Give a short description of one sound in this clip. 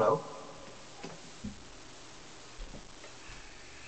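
A guitar is set down with a soft knock.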